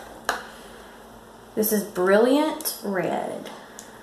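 A plastic cup is set down on a table.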